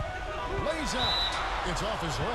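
A referee's whistle blows a short blast.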